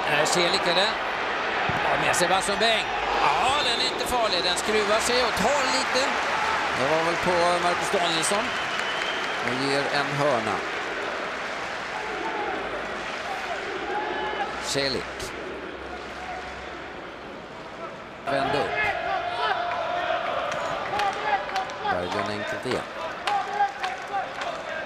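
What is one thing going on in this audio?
A stadium crowd murmurs and cheers in a large open space.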